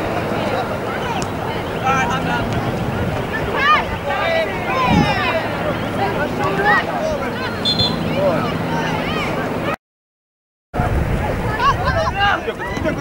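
Young players call out faintly across an open field.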